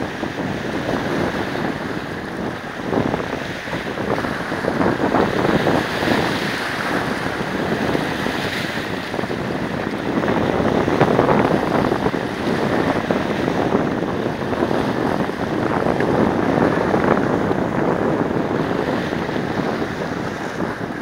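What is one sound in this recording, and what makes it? Small waves splash and wash over rocks close by.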